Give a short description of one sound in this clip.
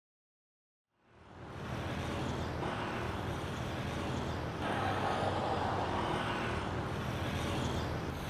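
City traffic rumbles steadily as cars drive along a street.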